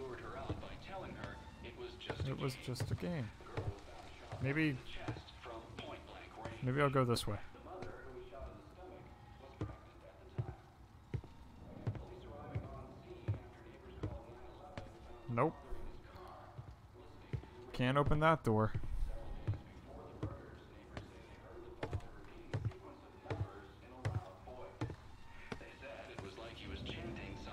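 Footsteps fall slowly on a carpeted floor.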